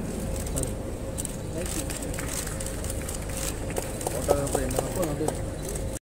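A few people applaud nearby.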